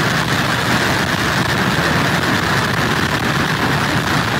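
Heavy surf crashes and roars against a pier.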